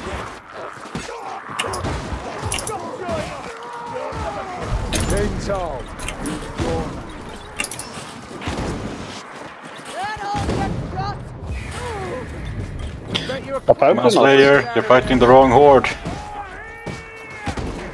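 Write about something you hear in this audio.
Blades hack and clash in close fighting.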